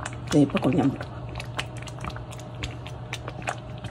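Liquid pours into a pot of thick mixture.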